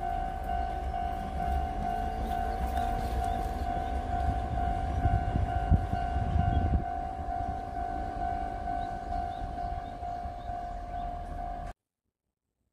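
A train idles at a platform with a steady humming tone.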